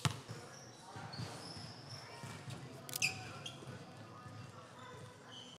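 Sneakers squeak on a hard court floor in a large echoing hall.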